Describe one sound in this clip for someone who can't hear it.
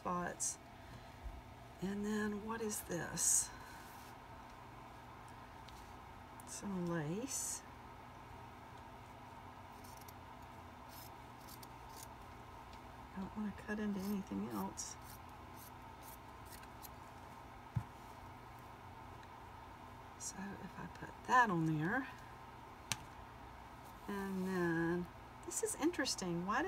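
Cloth rustles as it is handled.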